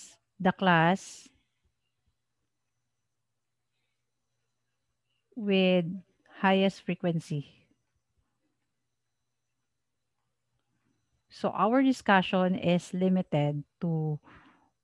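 A woman speaks calmly and clearly into a microphone, in short phrases with pauses.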